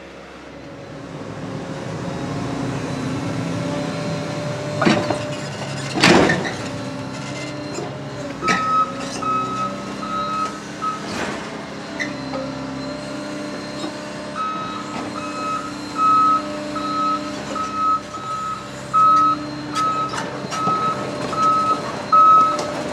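A heavy excavator engine rumbles steadily nearby.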